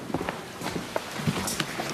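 Suitcases bump onto the floor.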